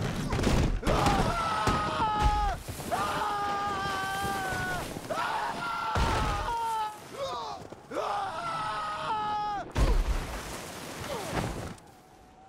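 A horse cries out as it tumbles down a mountainside.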